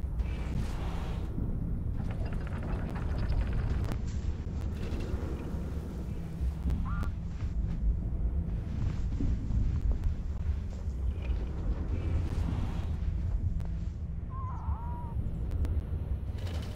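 Strong wind roars and gusts steadily.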